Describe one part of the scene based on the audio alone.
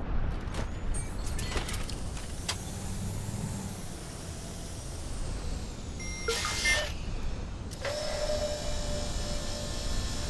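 A small drone whirs as it flies.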